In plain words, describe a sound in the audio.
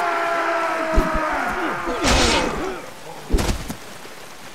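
Swords clash and strike in sharp blows.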